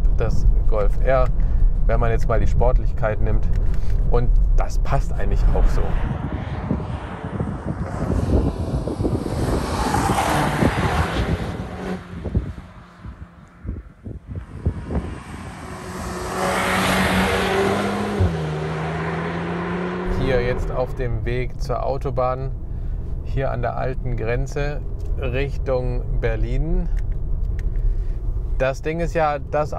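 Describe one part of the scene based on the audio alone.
A man talks with animation, heard up close inside a car.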